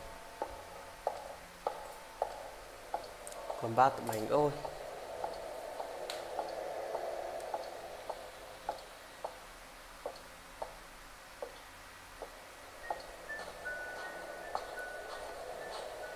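Footsteps thud steadily on a floor.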